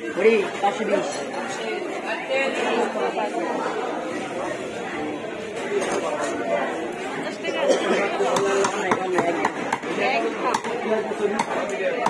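A blade slices and scrapes through fish flesh.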